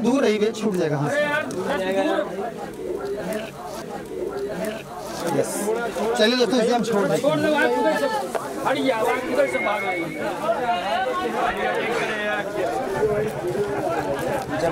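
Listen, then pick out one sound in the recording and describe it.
A crowd of men talk loudly over one another close by.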